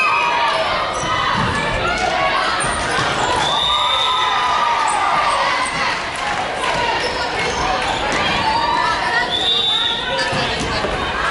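Young girls shout and chatter in a large echoing hall.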